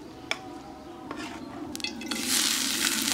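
Oil sizzles in a hot pan.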